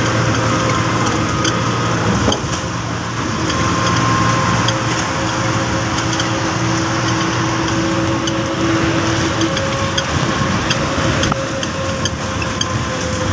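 A vehicle's engine and tyres rumble steadily while driving.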